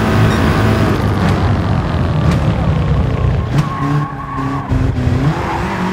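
A racing car engine drops in pitch as it slows hard for a corner.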